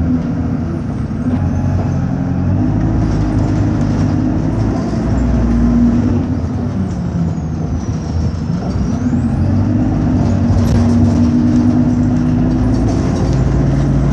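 A bus engine hums and rumbles steadily while the bus drives.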